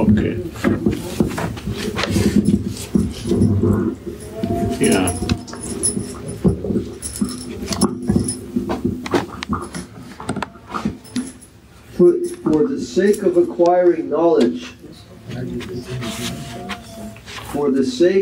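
An elderly man chants in a low, steady voice close by.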